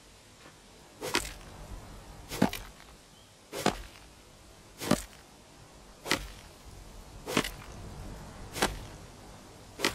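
A pickaxe strikes stone in steady, evenly spaced blows.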